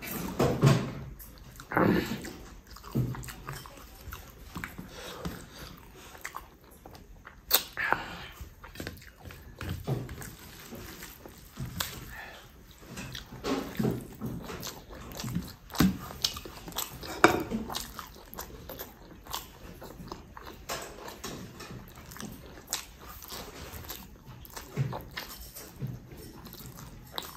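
Fingers squish and mix soft rice on a metal plate.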